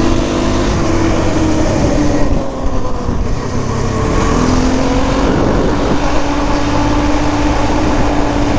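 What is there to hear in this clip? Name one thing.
A quad bike engine revs loudly up close, rising and falling in pitch.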